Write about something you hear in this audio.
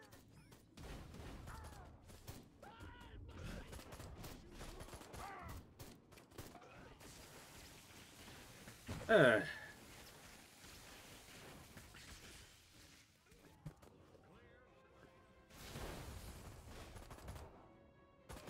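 Explosions boom in a game.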